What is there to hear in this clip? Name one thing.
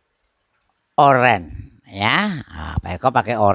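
A middle-aged man speaks with animation into a headset microphone.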